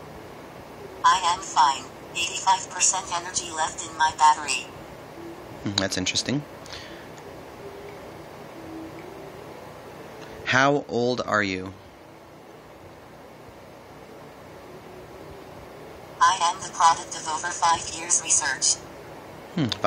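A synthetic voice answers from a phone's small loudspeaker.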